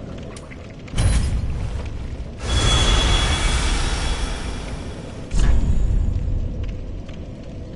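A deep magical rumble swells and roars, then fades.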